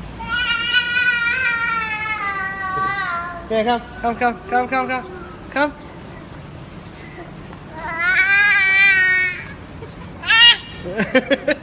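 A toddler girl wails and cries loudly up close.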